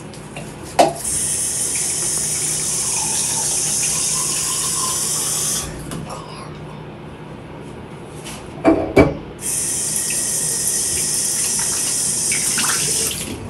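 An electric toothbrush buzzes steadily.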